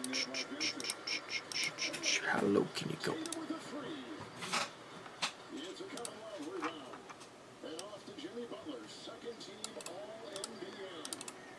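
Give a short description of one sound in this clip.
A computer mouse clicks, close by.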